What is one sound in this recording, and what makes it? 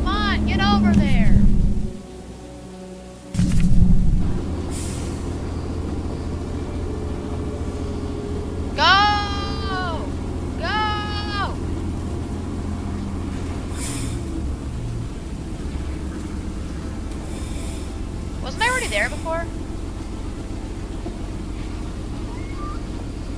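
A steam engine rumbles and chugs steadily.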